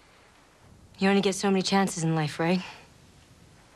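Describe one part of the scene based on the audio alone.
A young woman talks warmly on a phone, close by.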